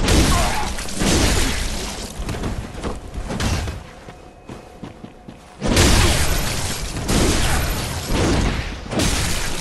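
A blade swings through the air with loud whooshes.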